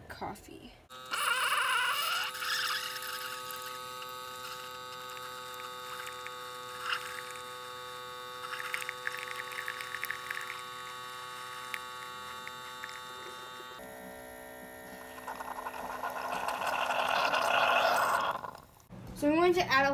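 A coffee machine hums steadily while brewing.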